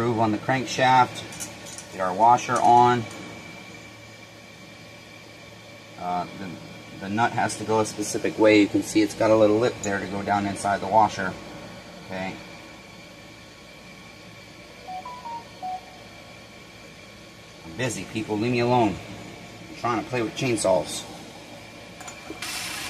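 Metal parts clink as a man works on an engine.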